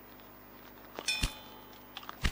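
A short chime rings as a menu pops open.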